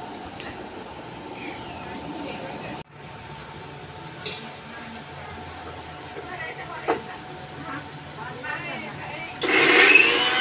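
A knife taps on a board as onions are chopped.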